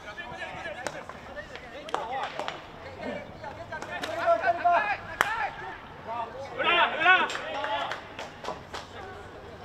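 Hockey sticks clack against a ball.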